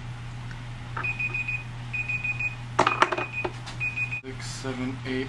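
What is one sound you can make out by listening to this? A timer beeps in short bursts.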